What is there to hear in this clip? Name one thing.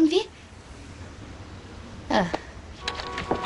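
A young woman speaks quietly and earnestly, close by.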